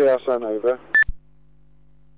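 A radio gives a short beep.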